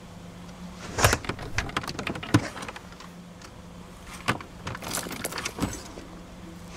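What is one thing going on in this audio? Papers rustle as a hand rummages through a glove box.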